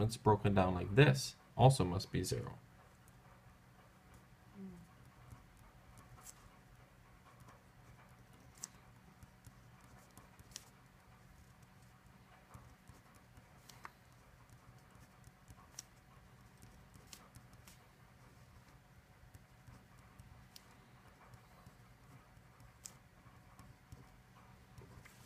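A pen scratches and taps softly on paper.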